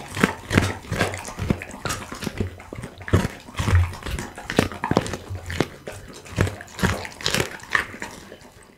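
A dog chews and crunches raw bones close to a microphone.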